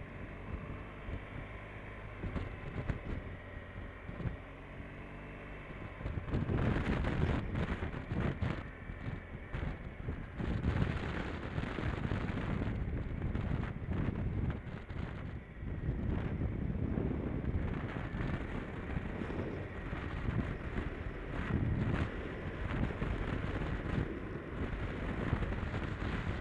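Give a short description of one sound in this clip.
Wind buffets loudly against a helmet, growing stronger from partway on.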